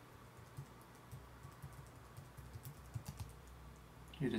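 Keys on a computer keyboard click quickly as someone types.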